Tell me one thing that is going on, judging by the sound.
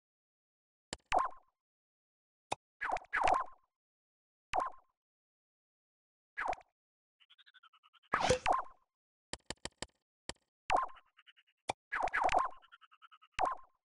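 Soft swooshing interface tones sound as menus open and close.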